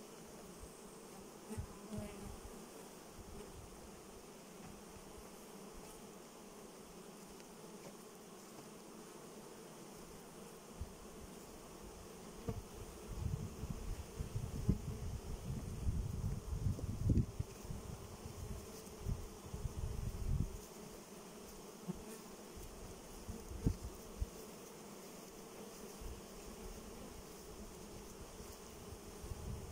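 Bees buzz steadily around their hives outdoors.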